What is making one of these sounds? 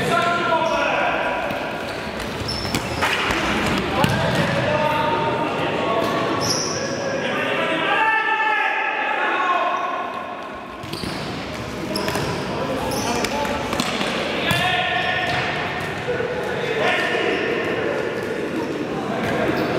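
Men shout to each other in an echoing sports hall.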